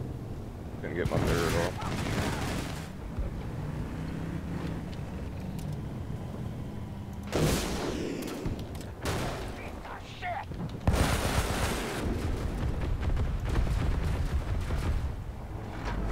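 Gunfire rattles in bursts.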